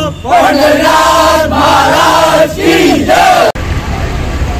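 A group of men chant together loudly outdoors.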